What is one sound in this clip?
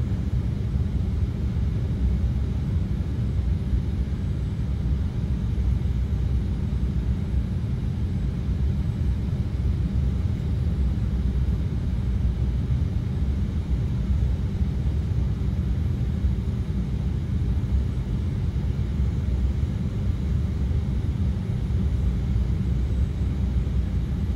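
An aircraft engine drones with a steady, low rumble.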